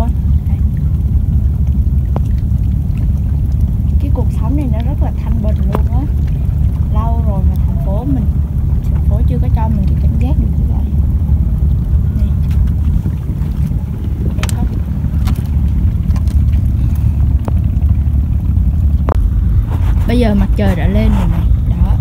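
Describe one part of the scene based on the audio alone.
Small waves lap gently against rocks.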